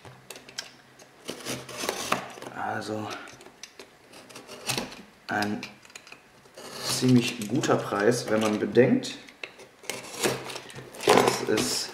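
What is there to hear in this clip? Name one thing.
A utility knife slices through packing tape on a cardboard box.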